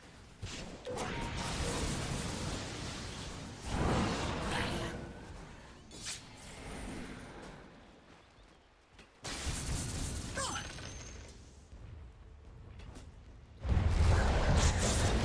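A young man talks close to a microphone with animation.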